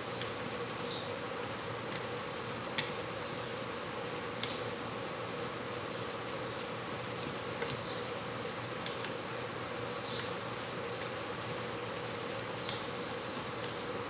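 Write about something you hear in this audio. Ground meat sizzles steadily in a hot pan.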